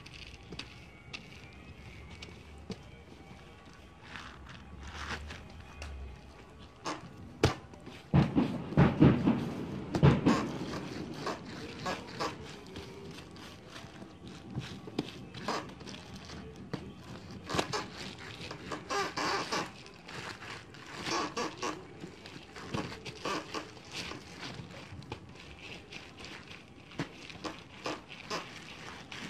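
Plastic wrap crinkles and rustles close by.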